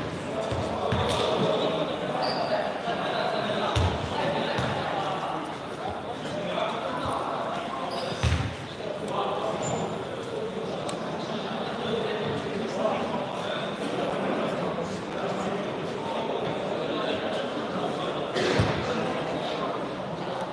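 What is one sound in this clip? Young people chatter and call out in an echoing hall.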